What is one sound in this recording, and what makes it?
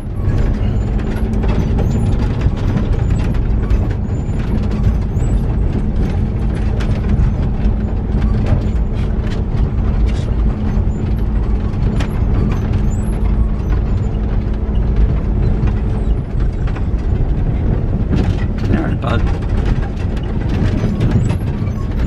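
A vehicle engine rumbles steadily while driving slowly.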